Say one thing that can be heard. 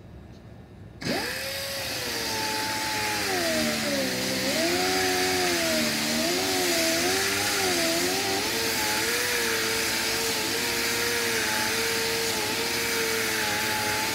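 An electric polisher whirs loudly, its pitch wavering as it presses on the surface.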